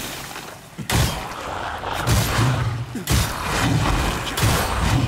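A weapon swings and strikes with heavy whooshing blows.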